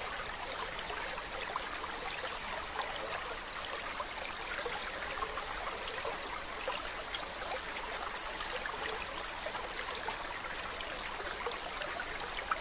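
An otter splashes as it swims through the water.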